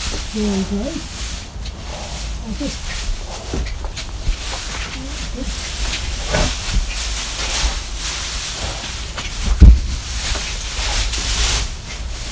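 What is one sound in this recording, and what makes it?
Hooves rustle and shuffle in straw.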